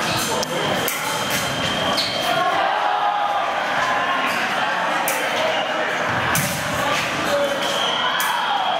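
Fencing blades clash and scrape.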